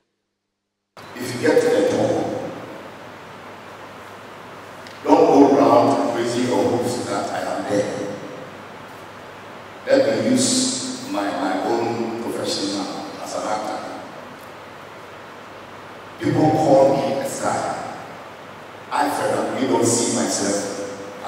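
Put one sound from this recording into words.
An elderly man speaks with animation through a microphone and loudspeakers, in short bursts.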